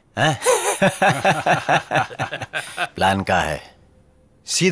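A man talks loudly with animation.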